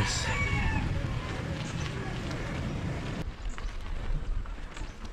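Bicycle tyres roll and crunch over a dirt track.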